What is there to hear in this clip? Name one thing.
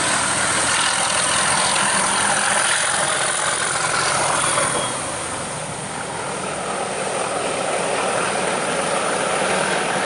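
Train wheels clatter and rumble along the rails.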